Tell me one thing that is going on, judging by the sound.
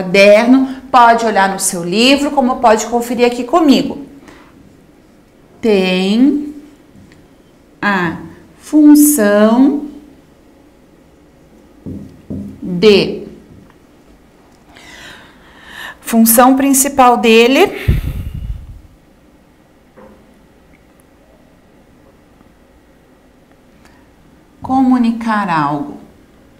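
A young woman speaks calmly and clearly, close by, pausing often.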